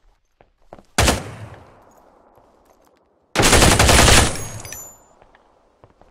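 A rifle fires a loud rapid burst, echoing off hard walls.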